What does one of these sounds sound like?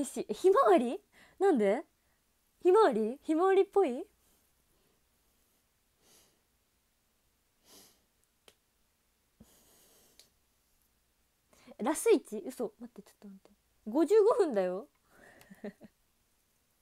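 A young woman talks cheerfully and close by, in bursts with pauses.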